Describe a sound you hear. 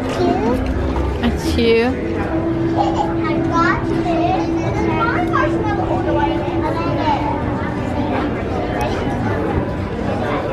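Young children chatter and talk excitedly nearby.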